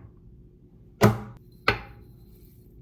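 A plastic jar lid clicks as it is twisted off and set down on a counter.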